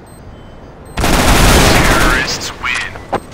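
A rifle fires a loud rapid burst.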